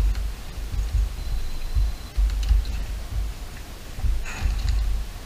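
Keyboard keys clack under quick presses.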